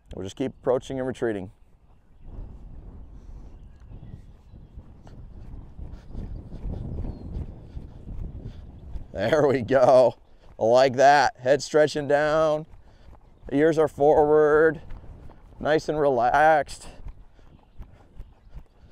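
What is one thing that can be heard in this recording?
Horse hooves thud softly on sand at a trot.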